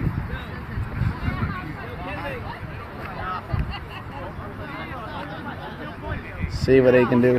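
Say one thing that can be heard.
A crowd of men and women talk and shout excitedly outdoors, close by.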